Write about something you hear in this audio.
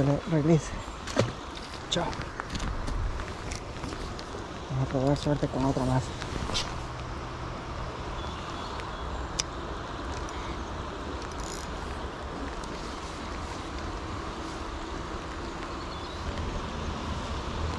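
A stream flows steadily nearby.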